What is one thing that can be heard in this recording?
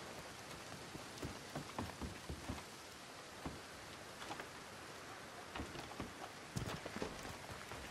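Footsteps thud on wooden steps and boards.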